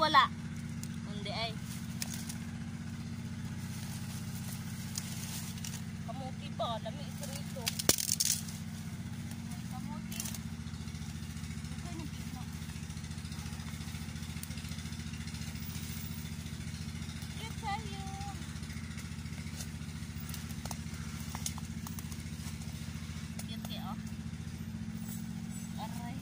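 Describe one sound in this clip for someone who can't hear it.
Leafy plants rustle and stalks snap as they are pulled from the ground.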